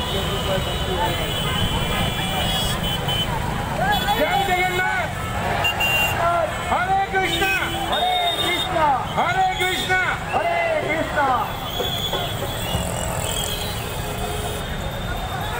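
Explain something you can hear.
A large crowd murmurs and shouts outdoors.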